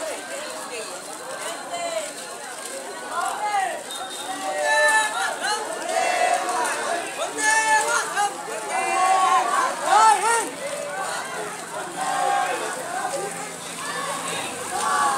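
A crowd of young people chant and shout loudly outdoors.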